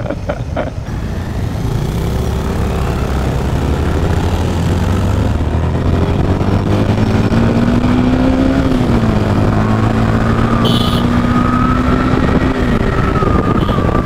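A motorcycle engine drones steadily as it rides along.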